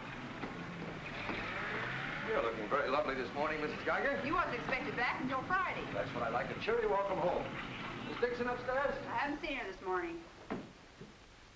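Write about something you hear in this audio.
A woman talks.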